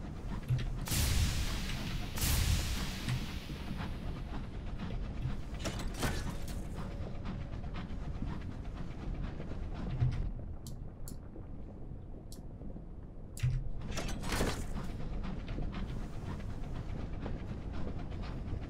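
A small submarine's engine rumbles low and steady underwater.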